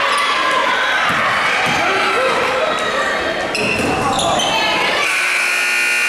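Spectators shout and cheer in an echoing gym.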